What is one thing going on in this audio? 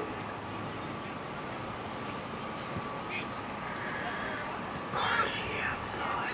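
A light breeze blows outdoors.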